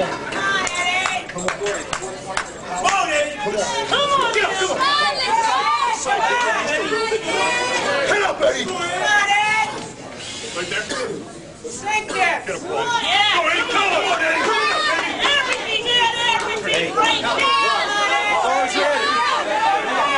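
A group of men talk and call out close by.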